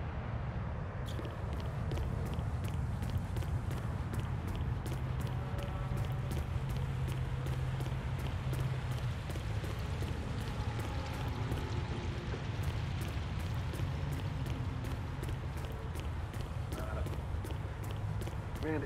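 Quick footsteps run over a hard path.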